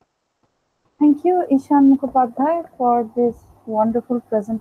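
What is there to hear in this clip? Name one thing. A young woman speaks over an online call.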